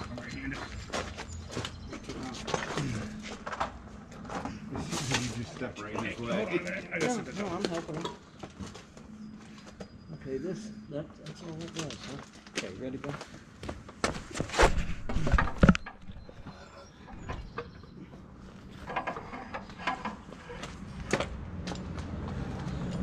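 Metal tools clank and knock.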